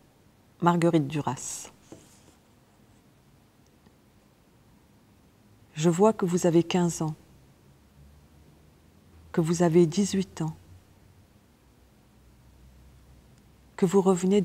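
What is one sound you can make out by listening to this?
A woman reads aloud slowly and calmly into a close microphone, with long pauses.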